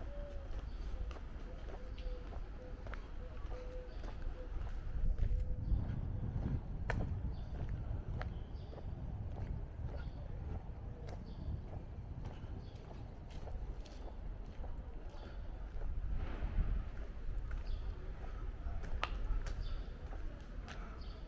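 Footsteps walk steadily along a paved street outdoors.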